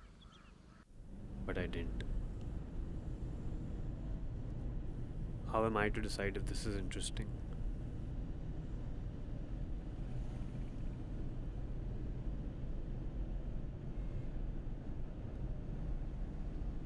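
Road traffic rumbles steadily past.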